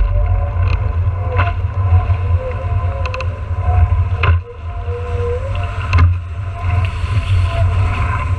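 A board skims and slaps over choppy water.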